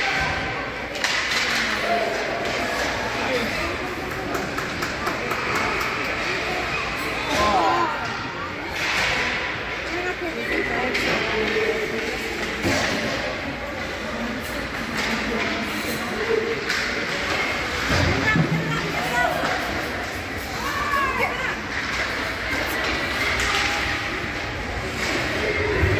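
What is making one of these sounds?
Spectators murmur and shout in a large echoing rink.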